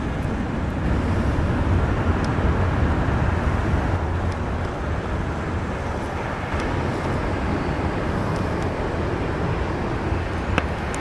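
A jet airliner's engines roar with a steady, deep rumble.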